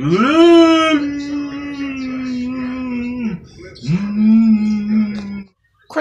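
A middle-aged man close by wails in long, drawn-out notes.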